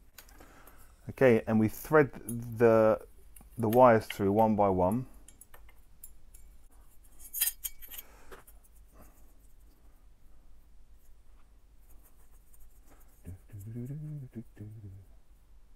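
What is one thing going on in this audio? Small plastic parts click and rustle in a man's hands.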